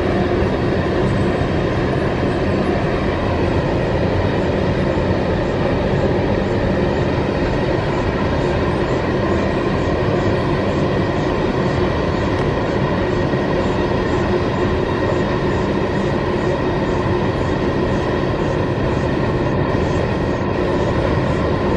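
A long freight train rumbles and clatters steadily along the tracks.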